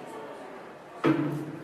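A microphone is bumped with a loud thud.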